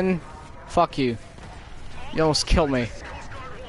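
A rifle fires a shot.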